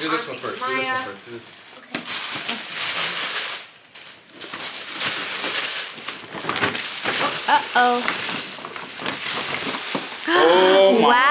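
Wrapping paper rustles and tears as a present is unwrapped.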